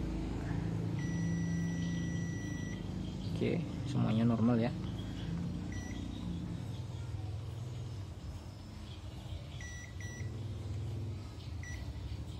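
A multimeter beeps with short, high tones.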